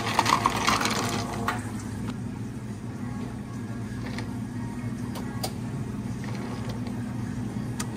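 A coffee machine hums steadily.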